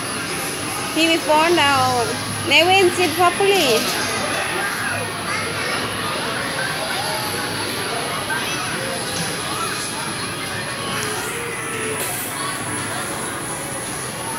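Distant voices murmur in a large echoing hall.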